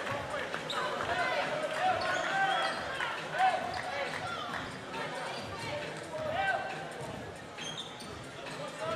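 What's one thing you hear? Sneakers squeak sharply on a hardwood court in a large echoing hall.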